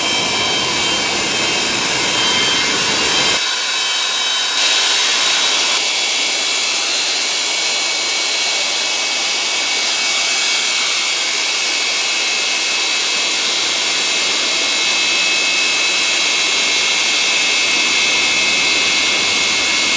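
Jet engines whine loudly and steadily nearby.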